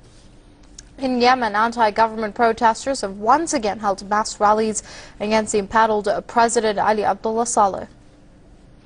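A young woman reads out news calmly through a microphone.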